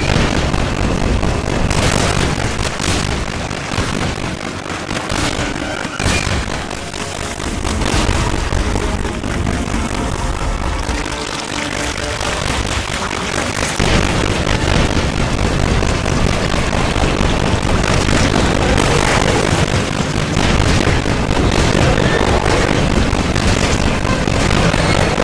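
A flamethrower roars loudly, spraying fire.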